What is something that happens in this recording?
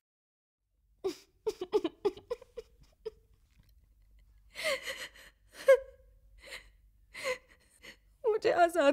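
A young woman sobs and sniffles tearfully.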